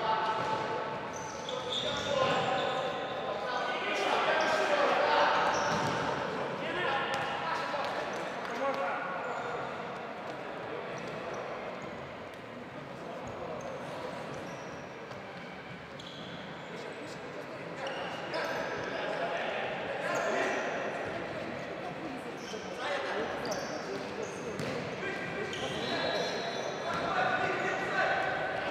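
Men shout to each other across the court.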